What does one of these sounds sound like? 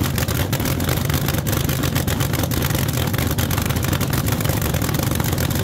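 A dragster engine idles with a loud, harsh, rapid rumble close by.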